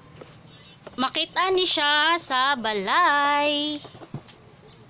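A young woman sings a short melody loudly close by.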